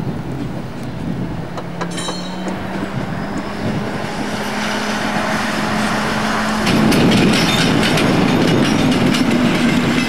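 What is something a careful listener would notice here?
A diesel engine hums steadily nearby.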